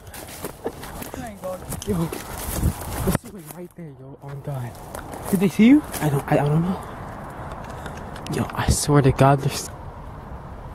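Footsteps crunch through dry leaves and twigs.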